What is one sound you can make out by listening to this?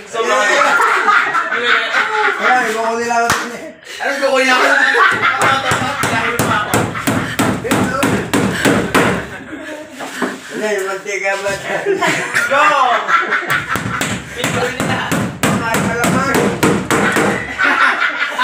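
Women laugh loudly and excitedly close by.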